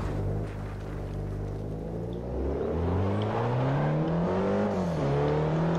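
A car engine revs up, rising in pitch as it accelerates, then drops briefly at a gear change before climbing again.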